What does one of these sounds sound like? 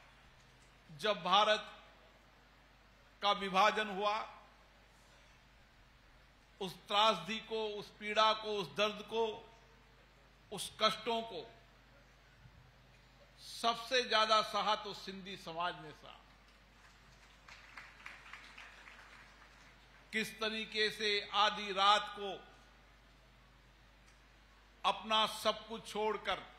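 A middle-aged man speaks with emphasis into a microphone, heard over loudspeakers in a wide space, in short bursts with pauses.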